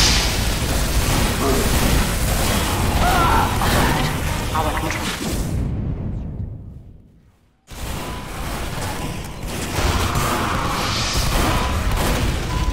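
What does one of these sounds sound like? A flamethrower roars with a steady rushing blast.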